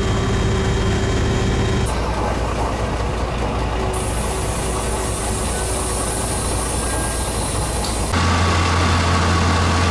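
A train rumbles and hums steadily.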